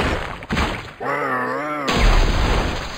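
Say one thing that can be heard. A large creature lets out a long, wavering cry.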